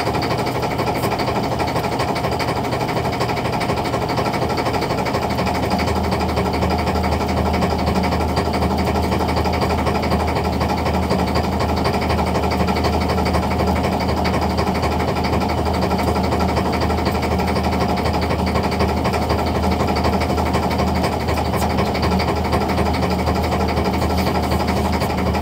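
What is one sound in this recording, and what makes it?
A boat engine drones steadily close by.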